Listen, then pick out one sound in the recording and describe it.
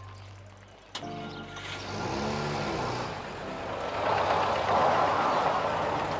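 A car engine starts and runs as a car pulls away.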